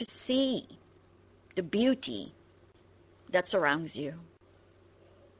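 A woman speaks in short bursts close by.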